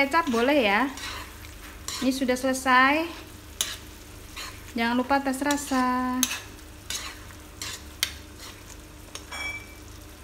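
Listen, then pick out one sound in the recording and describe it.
A metal spoon scrapes and stirs food in a wok.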